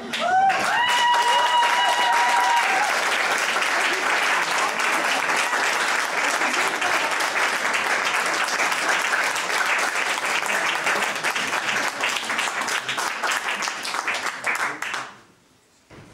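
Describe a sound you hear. An audience applauds loudly and cheers, then quiets down.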